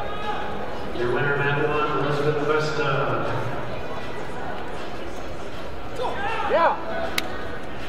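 Spectators shout and cheer from the stands.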